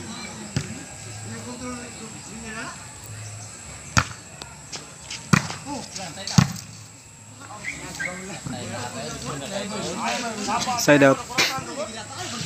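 A ball thumps sharply as it is kicked.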